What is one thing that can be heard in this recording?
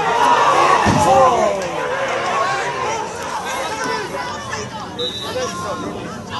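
A crowd of spectators shouts and groans outdoors.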